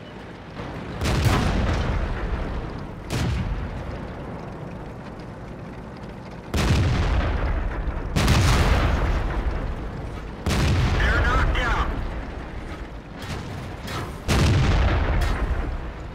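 Tank cannons fire with heavy booms.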